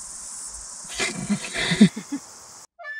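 A little child giggles and babbles.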